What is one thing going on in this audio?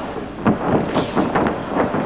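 A kick slaps against a wrestler's body.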